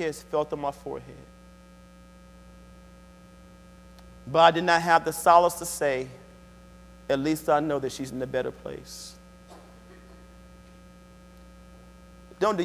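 A man speaks calmly through a microphone in a large room, with pauses between phrases.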